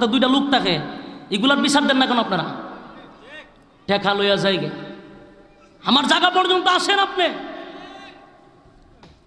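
A man preaches forcefully into a microphone over loudspeakers, in bursts with long echoing tails.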